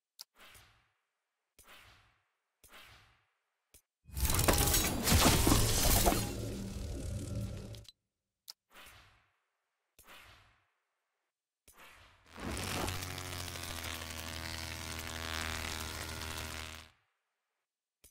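Short menu swooshes sound each time the item changes.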